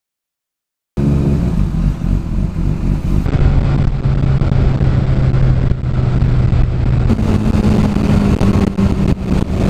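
A motorcycle engine drones steadily close by.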